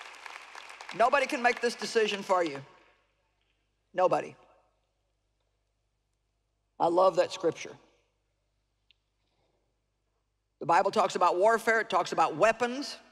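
A middle-aged woman speaks calmly through a microphone in a large hall.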